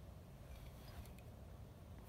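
A metal bottle cap clinks against a bottle.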